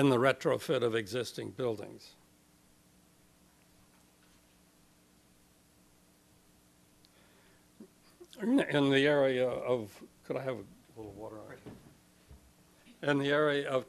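An elderly man speaks calmly into a microphone, with pauses.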